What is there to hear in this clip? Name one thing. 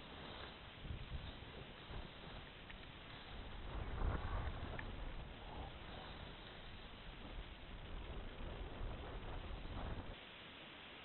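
Skis scrape and hiss over packed snow.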